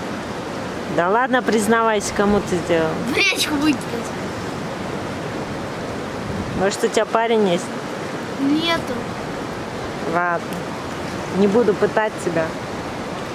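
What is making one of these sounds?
A young girl speaks calmly close by.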